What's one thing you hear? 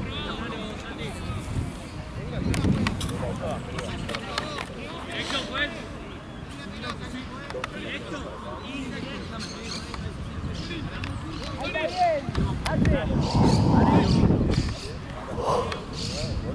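Young women shout and call to each other across an open field.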